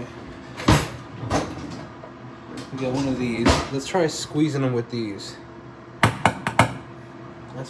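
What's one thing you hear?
A plastic utensil knocks against a glass jar.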